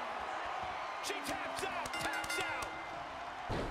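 A referee's hand slaps the mat in a count.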